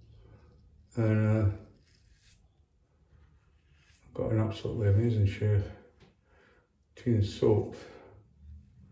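An older man speaks calmly close by.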